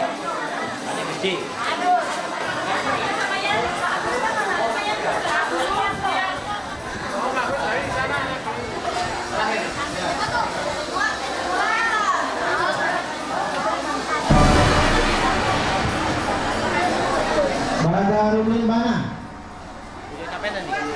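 A crowd of children and adults chatters and shouts nearby.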